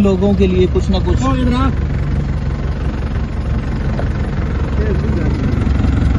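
A vehicle engine rumbles steadily.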